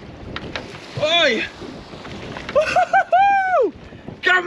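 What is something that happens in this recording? A man whoops and shouts excitedly close by.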